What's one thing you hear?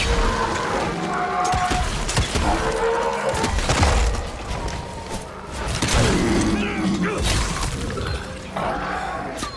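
Heavy blows and blasts crash loudly in a fight.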